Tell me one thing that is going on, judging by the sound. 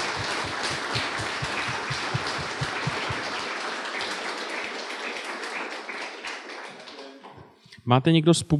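An audience applauds in a room, then the clapping fades.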